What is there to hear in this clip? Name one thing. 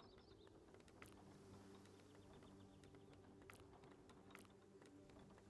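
Soft game menu clicks sound now and then.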